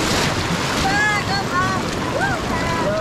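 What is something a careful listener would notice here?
A young woman calls out close by with excitement.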